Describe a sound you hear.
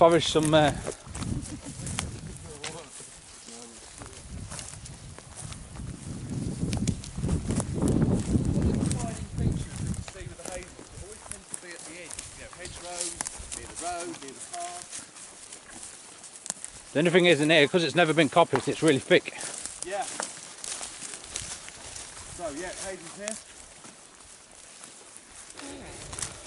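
Footsteps rustle through grass and brush outdoors.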